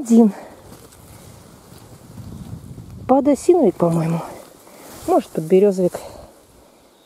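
Leaves and fern fronds rustle as a hand pushes through them.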